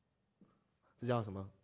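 A man speaks briefly and loudly nearby.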